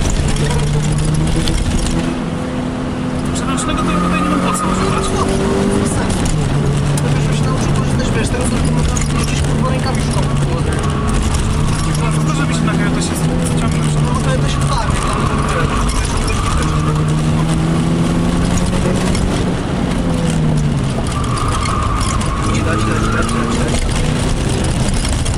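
A car engine roars close by, revving up and down through the gears.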